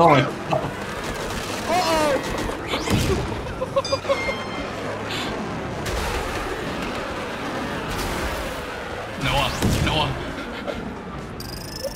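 Small toy car engines whine as the karts race.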